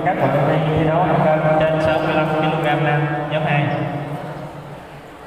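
A man shouts a long call in a large echoing hall.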